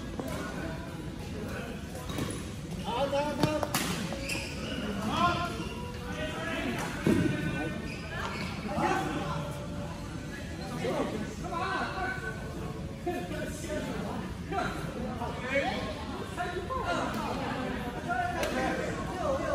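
Men talk and call out across the hall.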